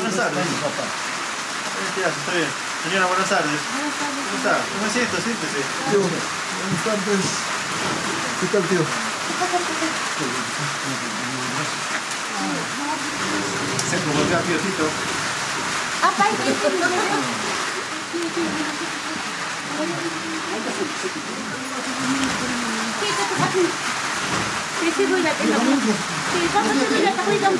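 Several men and women talk with each other close by.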